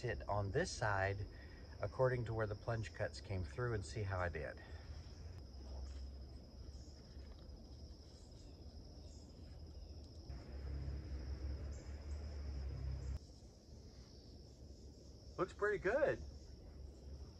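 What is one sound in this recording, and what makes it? A middle-aged man talks with animation close by, outdoors.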